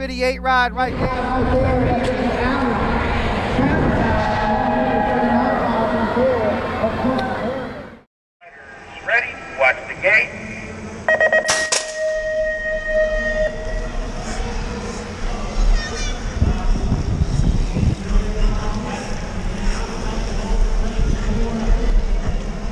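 Bicycle tyres roll fast over a packed dirt track.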